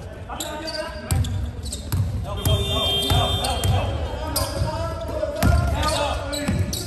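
Players call out to each other across an echoing hall.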